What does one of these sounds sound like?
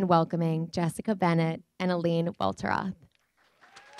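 A young woman speaks cheerfully into a microphone.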